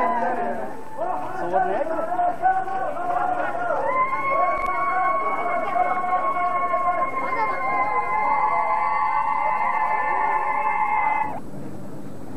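A group of men chant together in a loud, drawn-out unison outdoors.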